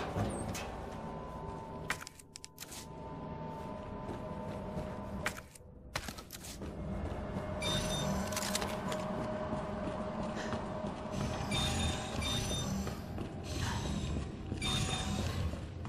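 Footsteps thud on a hard floor.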